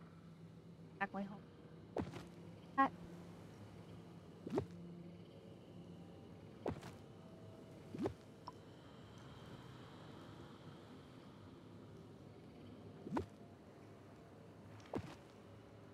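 Short swishing interface sounds play now and then.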